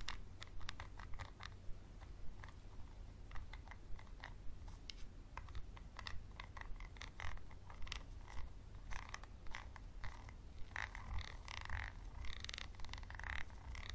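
Plastic crinkles softly in hands.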